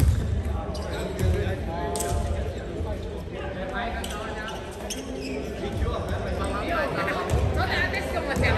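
A crowd of young men chatter and call out in a large echoing hall.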